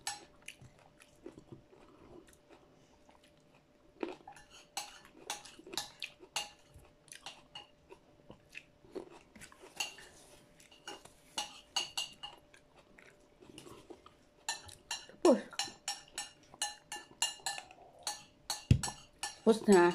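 A middle-aged woman chews and smacks her lips close by.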